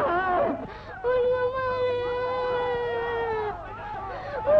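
A young woman sings a long, held note, heard through an old, muffled recording.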